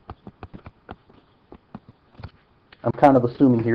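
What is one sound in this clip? A stylus taps on a tablet.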